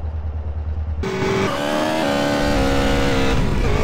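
A motorcycle engine revs up again.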